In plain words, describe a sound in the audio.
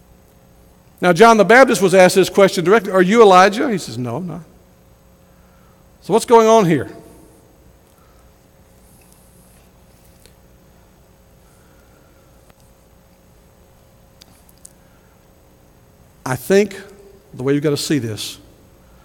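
A middle-aged man preaches with animation into a microphone, pausing between phrases.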